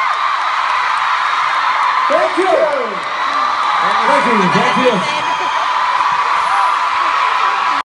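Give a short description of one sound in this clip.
A large crowd screams and cheers loudly throughout.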